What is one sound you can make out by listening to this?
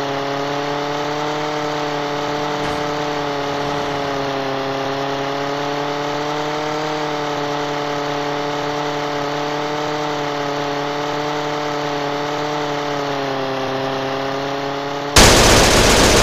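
A small propeller plane engine drones steadily at high revs.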